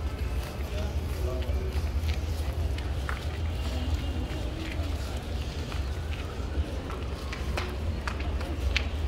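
Men and women chatter faintly in the background.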